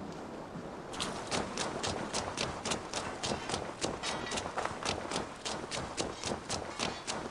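Quick footsteps thud on a dirt path.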